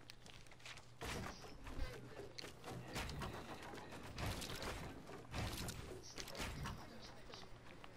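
Wooden walls and ramps snap into place with quick knocks.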